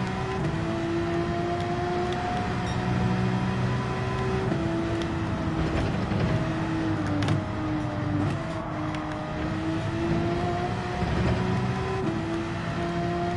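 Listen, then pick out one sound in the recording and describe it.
A racing car engine roars at high revs, shifting gears as it speeds along.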